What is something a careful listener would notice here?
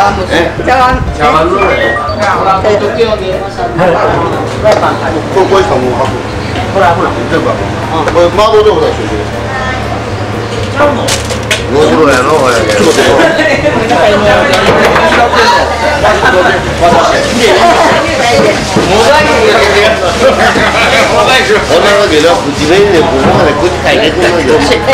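Several adults talk and laugh close by in a busy, lively room.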